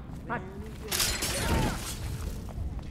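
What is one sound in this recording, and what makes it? A heavy door creaks open.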